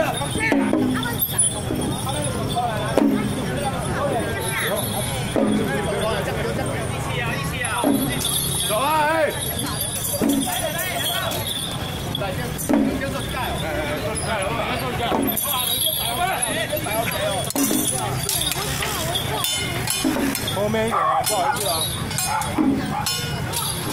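A crowd of people chatters loudly outdoors.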